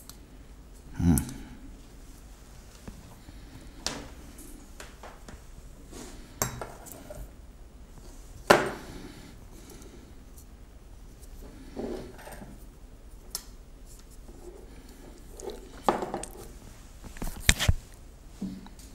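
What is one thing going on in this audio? Objects are handled and knock softly on a hard surface.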